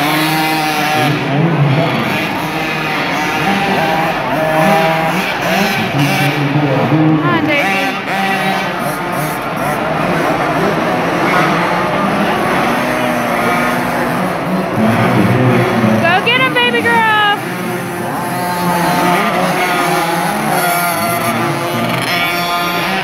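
Small dirt bike engines whine and rev in a large echoing hall.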